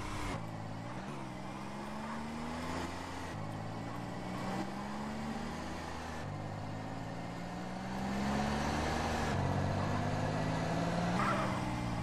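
A truck engine revs up and shifts gears repeatedly as it drives.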